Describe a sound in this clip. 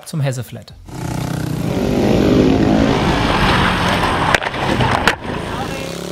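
Motorcycle engines roar loudly as riders race around a dirt track.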